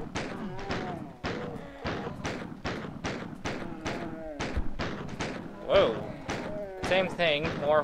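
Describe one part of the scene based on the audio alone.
A pistol fires shots in quick bursts.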